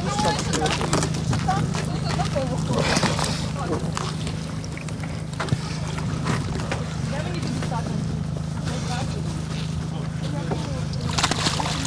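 Water splashes as a man lowers himself into icy water.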